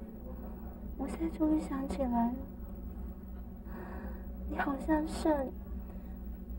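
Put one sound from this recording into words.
A second young woman answers softly, close by.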